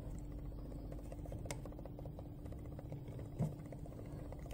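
A finger presses a button with a soft click.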